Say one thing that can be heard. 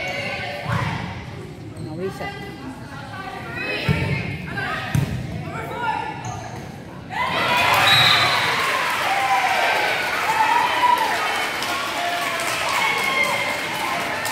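Young women shout and call out on the court.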